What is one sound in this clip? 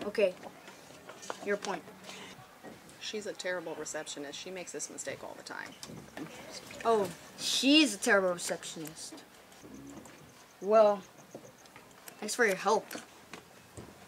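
A boy speaks nearby in a hesitant voice.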